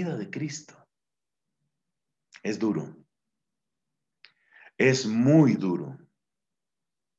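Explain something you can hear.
A middle-aged man speaks calmly into a microphone, heard as if over an online call.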